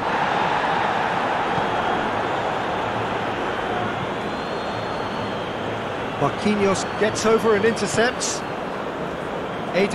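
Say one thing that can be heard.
A large stadium crowd roars and murmurs steadily.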